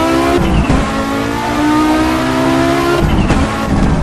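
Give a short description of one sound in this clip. A turbocharged five-cylinder rally car engine drops in pitch as it shifts up a gear.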